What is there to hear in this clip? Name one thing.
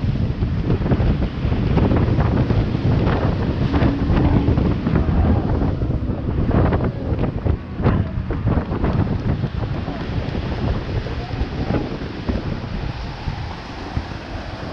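Water rushes and splashes against a speeding boat's hull.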